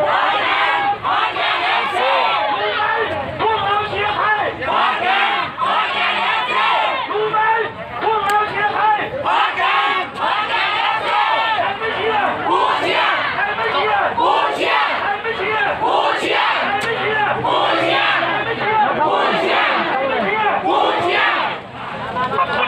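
A large crowd of fans sings and chants loudly outdoors.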